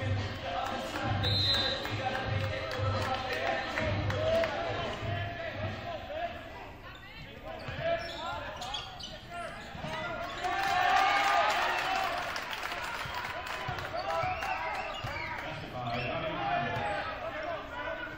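A small crowd murmurs and calls out in the stands.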